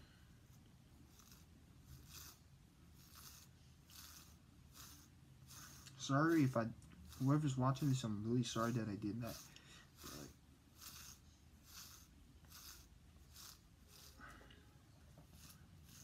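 A comb scrapes through hair in quick repeated strokes.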